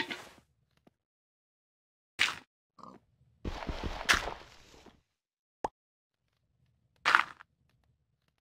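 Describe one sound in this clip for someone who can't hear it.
Blocks are placed and broken with short, crunchy thuds.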